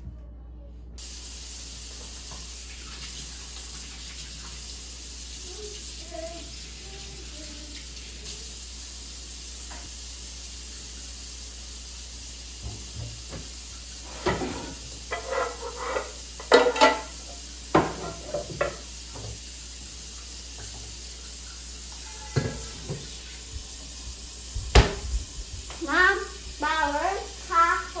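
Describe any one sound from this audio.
Water runs steadily from a tap.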